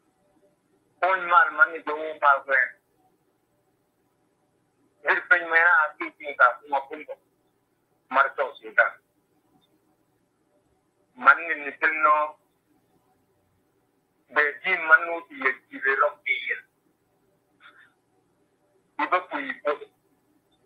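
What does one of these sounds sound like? A man speaks calmly in short phrases with pauses, heard through an online call.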